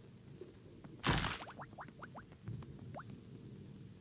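A game plays a bright chiming effect as items are collected.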